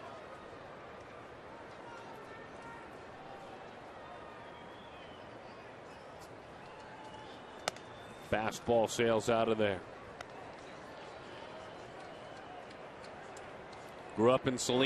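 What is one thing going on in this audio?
A crowd murmurs steadily in a large outdoor stadium.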